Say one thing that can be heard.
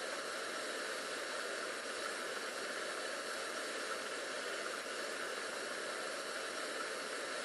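A power washer sprays water with a steady hiss.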